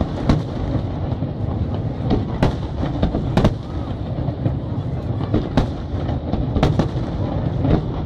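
Fireworks burst with loud booms and sharp bangs.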